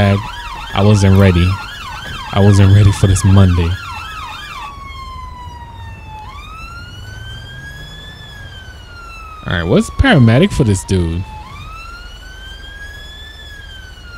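A police siren wails steadily, rising and falling slowly.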